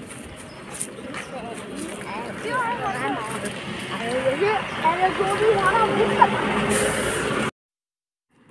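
Women chat as they walk along.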